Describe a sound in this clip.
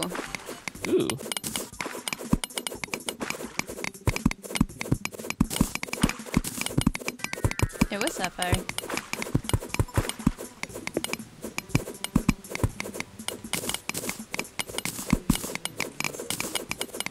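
A pickaxe chips rapidly at stone in a game.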